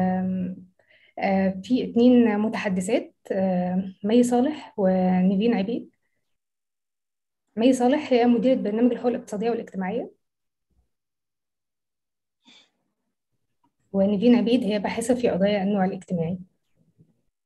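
A young woman speaks calmly over an online call, with pauses.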